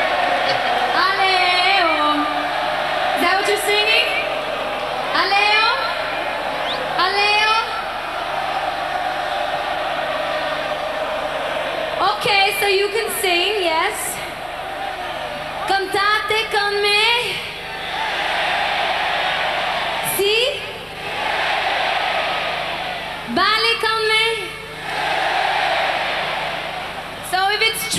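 A large crowd cheers and screams in a huge open arena.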